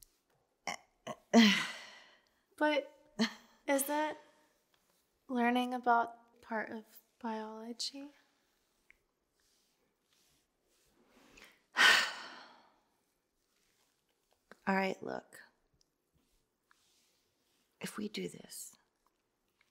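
A second young woman speaks softly in reply.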